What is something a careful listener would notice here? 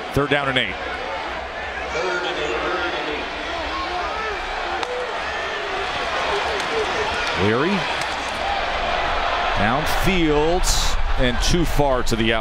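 A large stadium crowd roars and cheers, growing louder toward the end.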